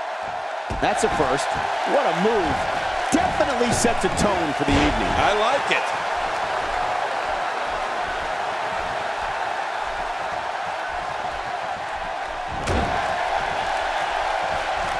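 A large crowd roars steadily in an arena.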